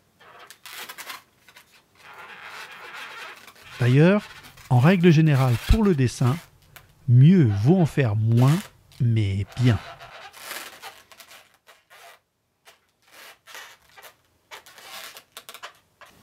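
A rubber balloon squeaks and rubs as it is twisted.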